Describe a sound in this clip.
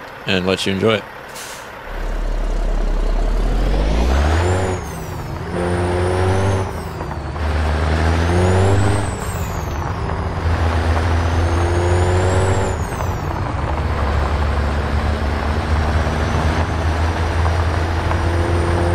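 Tyres crunch on a gravel road.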